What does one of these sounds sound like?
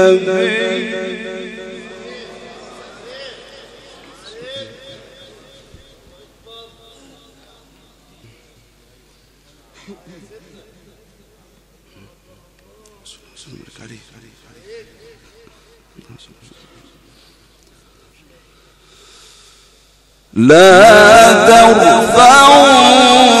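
A man chants in a long, melodic voice through a microphone, echoing in a large hall.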